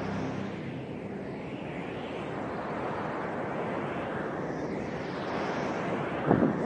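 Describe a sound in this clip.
A hovering spacecraft engine roars steadily.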